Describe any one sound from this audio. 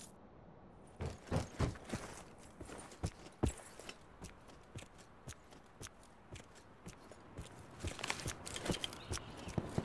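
Footsteps thud on the ground.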